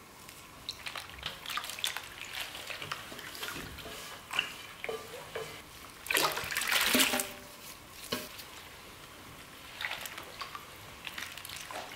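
A hand swishes and splashes through water.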